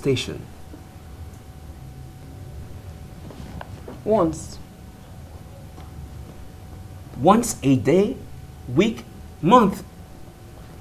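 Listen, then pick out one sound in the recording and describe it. A man asks questions with emphasis, close by.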